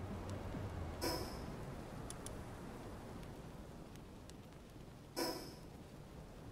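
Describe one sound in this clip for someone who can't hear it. A game menu opens and closes with a soft whooshing chime.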